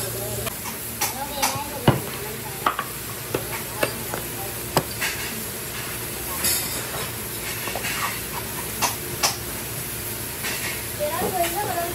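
A hammer taps sharply on a sandal sole.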